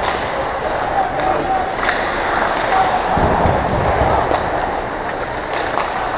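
Hockey sticks clack against a puck on the ice.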